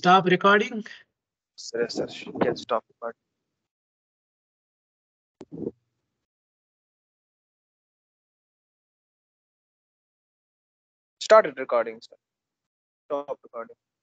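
A young man speaks calmly over an online call, in short bursts.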